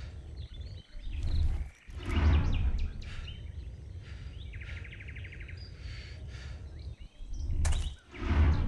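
A rifle fires loud shots that boom and echo outdoors.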